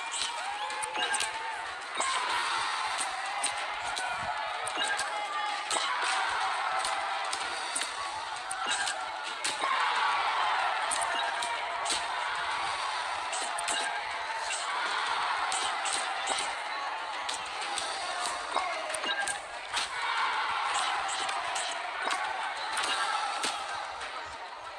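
Punches thud and smack against bodies again and again.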